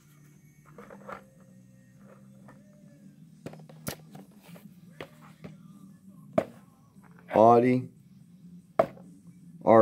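Plastic toy packaging clicks and rustles as it is handled.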